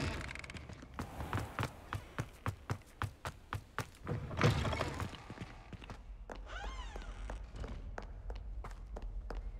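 Footsteps tap on stone at a steady walking pace.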